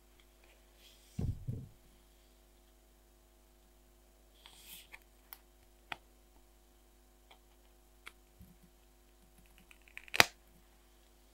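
A sticker sheet rustles and crinkles as it is handled.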